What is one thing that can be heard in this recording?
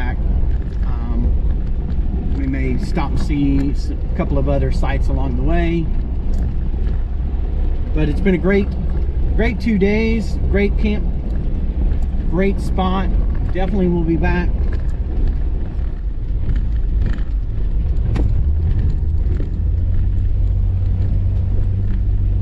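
A vehicle engine rumbles steadily while driving.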